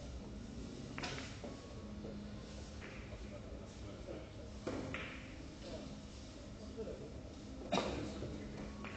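Billiard balls click against each other and knock on the cushions.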